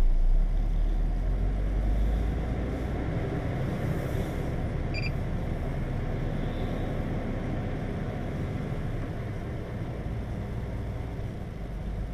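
A vehicle pulls away, its engine rumbling louder.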